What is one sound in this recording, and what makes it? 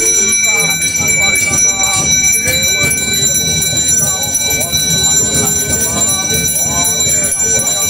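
A man chants loudly and rhythmically nearby.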